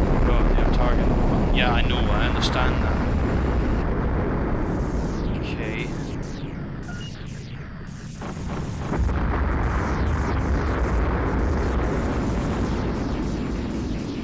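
A spaceship engine roars steadily.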